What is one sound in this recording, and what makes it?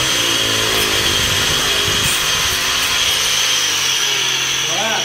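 An angle grinder whines.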